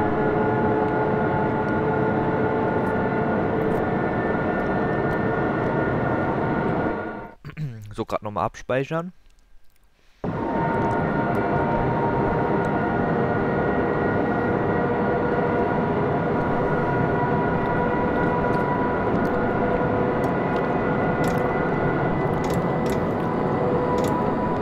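A train rumbles steadily along the rails with a low electric hum.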